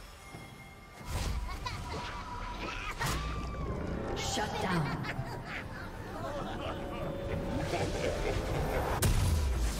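Video game spell effects whoosh, crackle and clash during a fight.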